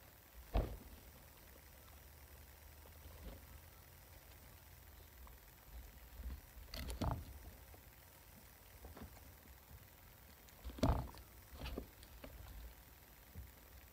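Guinea pigs nibble and bump against something close by.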